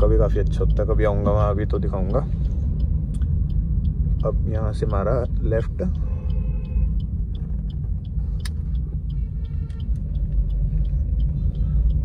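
A car engine hums low and steady while driving.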